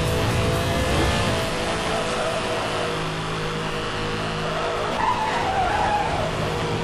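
A sports car engine roars at high speed.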